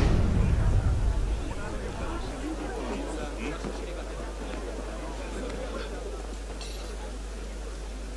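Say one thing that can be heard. A young man talks into a microphone.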